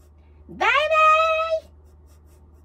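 A young woman sings a high rising note loudly into a microphone.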